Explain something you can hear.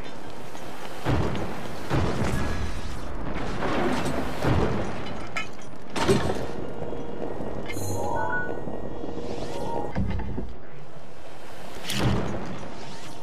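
Flames burst with loud whooshes.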